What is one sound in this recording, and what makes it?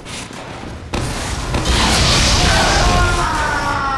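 A flamethrower roars in loud bursts.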